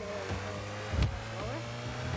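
A ball is struck with a loud thump.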